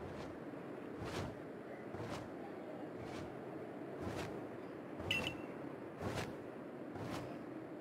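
A large bird flaps its wings.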